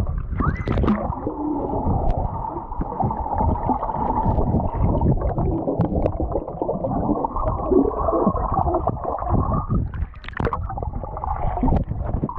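Bubbles rush and gurgle underwater, heard muffled.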